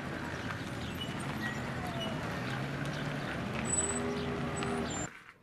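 Car engines hum as cars drive slowly along a busy street.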